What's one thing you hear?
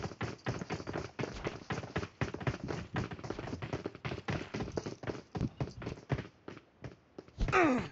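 Footsteps tap quickly on stone paving.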